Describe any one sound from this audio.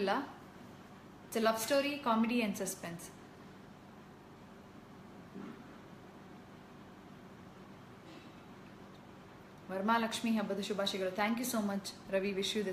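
A young woman speaks calmly and close to a microphone, pausing between phrases.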